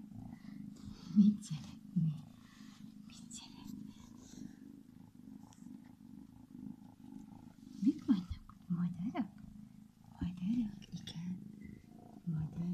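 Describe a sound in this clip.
A woman speaks softly and playfully, close by.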